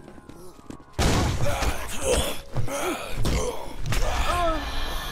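Heavy blows land in quick succession.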